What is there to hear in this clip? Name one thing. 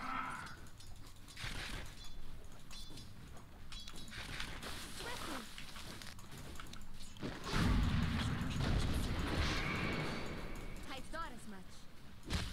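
Game battle effects clash, whoosh and boom.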